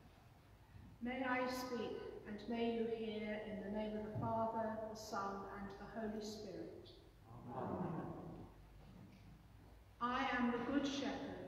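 A woman sings through a microphone in a large echoing hall.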